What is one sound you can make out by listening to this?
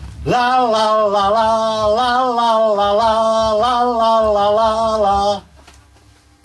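An elderly man sings loudly and with feeling into a close microphone.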